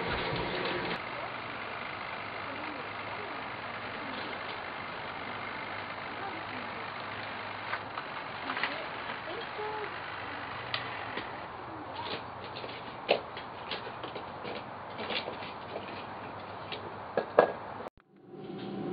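Metal tools clink and knock on a wooden deck outdoors.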